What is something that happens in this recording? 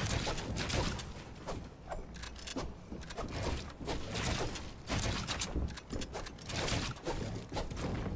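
Wooden panels clack rapidly into place.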